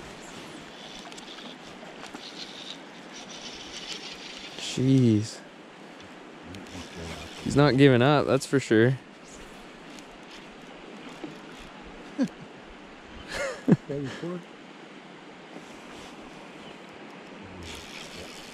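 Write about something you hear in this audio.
Water flows gently outdoors.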